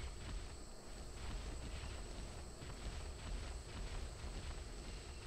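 Leaves and branches rustle as someone pushes through dense undergrowth.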